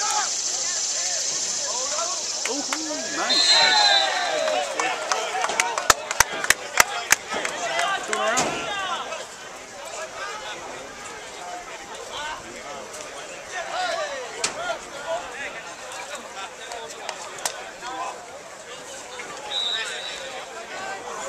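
Many young men and boys shout and chatter outdoors.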